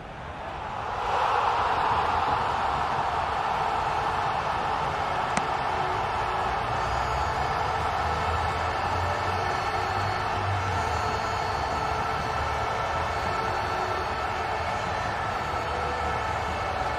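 A crowd cheers loudly in a large stadium.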